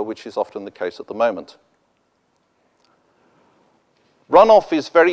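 A middle-aged man speaks calmly into a microphone, pausing briefly.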